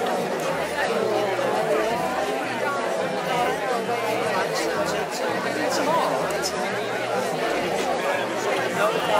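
Many men and women chatter and talk over each other nearby.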